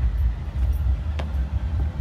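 A man's footsteps scuff on a hard floor.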